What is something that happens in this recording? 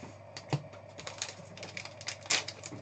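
A plastic sleeve crinkles and rustles in hands.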